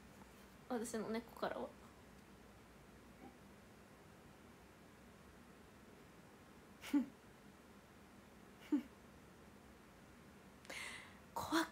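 A young woman speaks softly and close to a microphone, in short bursts.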